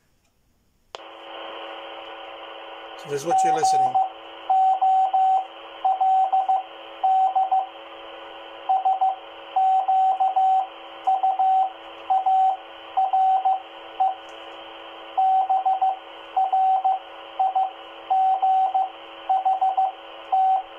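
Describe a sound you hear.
A radio gives out a steady hiss of static.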